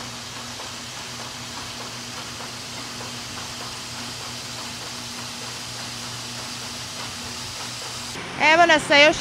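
Machinery hums steadily with a low drone.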